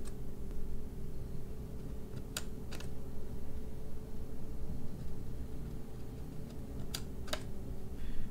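Small scissors snip through paper.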